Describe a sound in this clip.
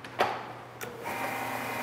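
A machine switch clicks sharply.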